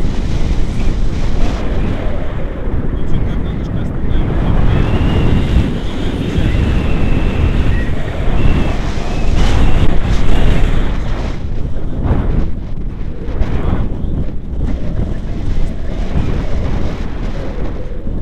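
A man talks close by, heard over the wind.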